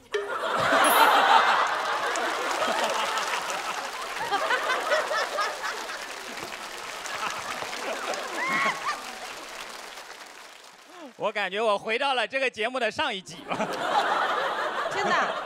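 An audience laughs and applauds loudly in a large hall.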